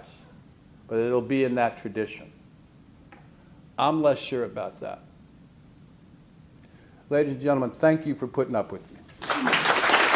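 An elderly man speaks calmly into a microphone with pauses.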